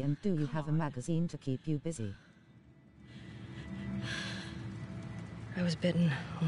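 A young woman speaks softly and haltingly, close by.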